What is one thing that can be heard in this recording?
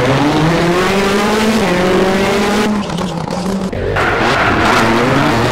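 A rally car engine roars and revs hard, its pitch climbing and dropping with each gear change.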